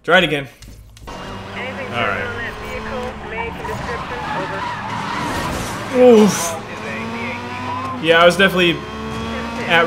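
A racing car engine hums and whines steadily.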